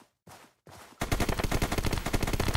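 Gunshots fire in a rapid burst.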